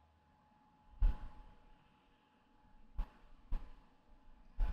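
Playing cards slap and slide on a tabletop.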